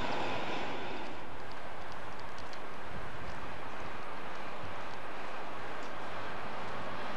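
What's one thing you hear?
A diesel locomotive hums as it approaches slowly.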